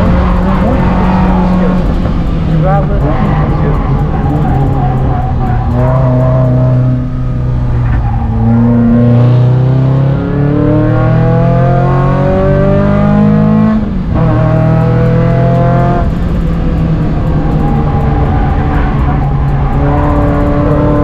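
A car engine roars loudly from inside the cabin, revving up and down through the gears.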